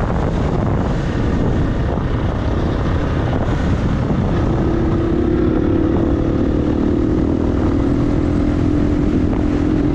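Tyres crunch over gravel and dirt.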